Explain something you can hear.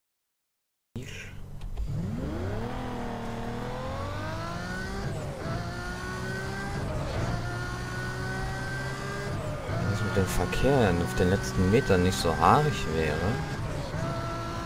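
A sports car engine roars and climbs in pitch as it speeds up through the gears.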